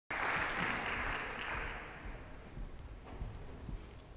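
An audience applauds in a large hall and the applause fades away.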